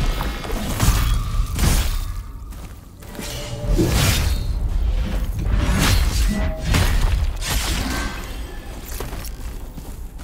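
A staff strikes and clangs in a fight.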